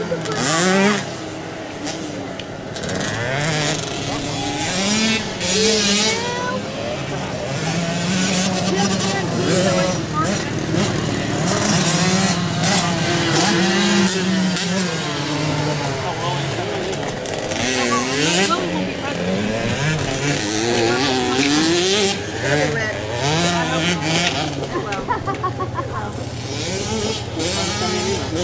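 Small motorbike engines whine and rev up and down.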